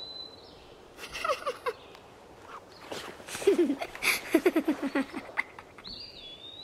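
Young boys talk and giggle softly close by.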